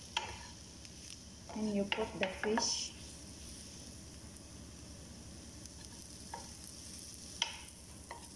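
Food sizzles softly in a hot pan.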